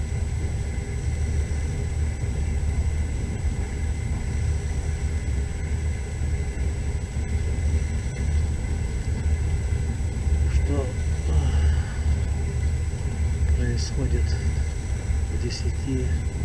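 A car engine hums steadily as the vehicle drives along.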